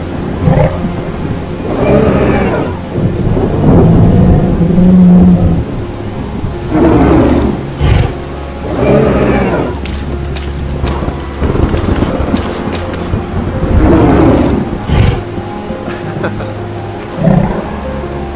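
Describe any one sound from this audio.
A large beast roars loudly and deeply.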